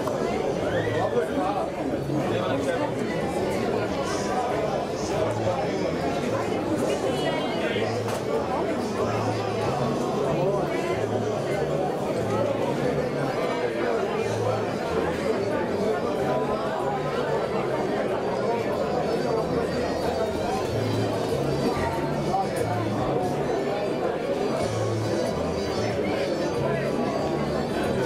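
A crowd of spectators chatters steadily outdoors.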